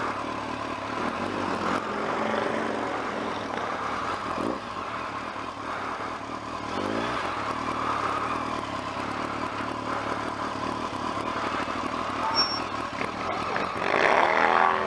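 A motorcycle engine hums steadily while riding slowly.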